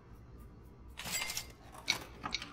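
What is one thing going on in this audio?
A plastic cassette tape is picked up with a short clatter.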